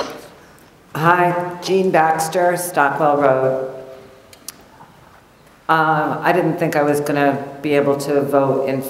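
A middle-aged woman speaks with animation into a microphone.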